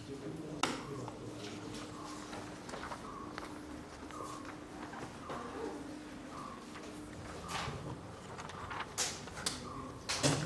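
Footsteps knock on a hard floor nearby.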